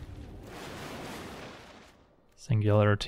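A magical whoosh sweeps across as a spell is cast.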